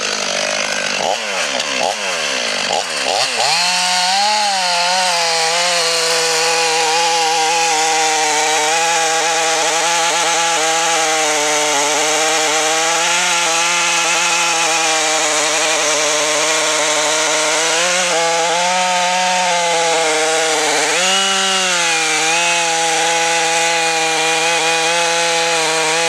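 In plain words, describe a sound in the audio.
A chainsaw engine revs up loudly and roars steadily, rising and dipping in pitch.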